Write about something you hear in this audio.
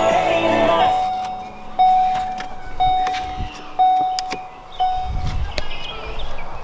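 A car chime beeps in a steady repeating pattern.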